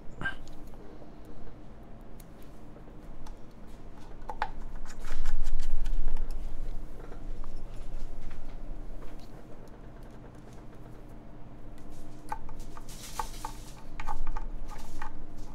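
Small objects click and tap on a desk.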